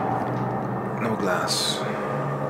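A man speaks quietly into a headset microphone.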